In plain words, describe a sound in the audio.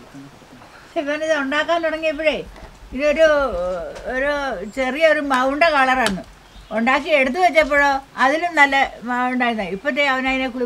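An elderly woman speaks calmly and clearly, close by.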